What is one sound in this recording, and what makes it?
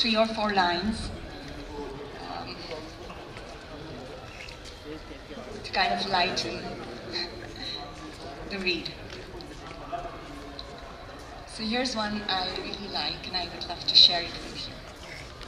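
A woman reads out slowly through a microphone, with long pauses.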